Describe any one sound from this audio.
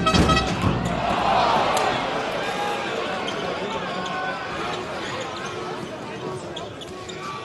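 Sports shoes squeak on the floor.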